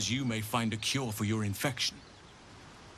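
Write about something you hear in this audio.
A man speaks calmly and clearly, close up.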